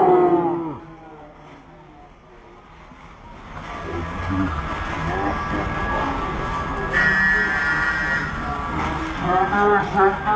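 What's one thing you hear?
A large crowd of people chatters and murmurs.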